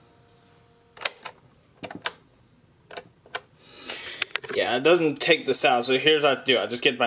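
Buttons on a cassette player click sharply.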